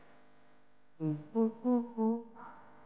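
A woman speaks with emotion close by.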